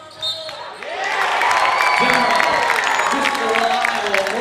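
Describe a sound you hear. Spectators cheer loudly.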